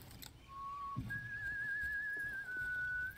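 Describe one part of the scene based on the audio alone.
A concertina plays long, wavering notes.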